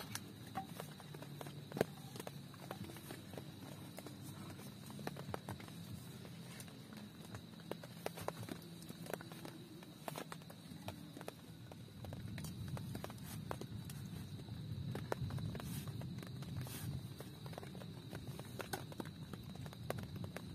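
Twigs rustle and scrape on the ground.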